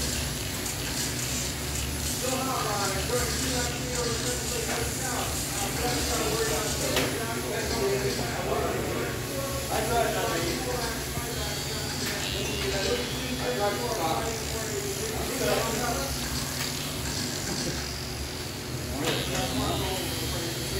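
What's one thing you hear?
Small electric racing cars whine as they speed around a track.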